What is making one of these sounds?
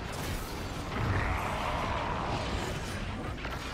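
An explosion bursts with a loud crackle.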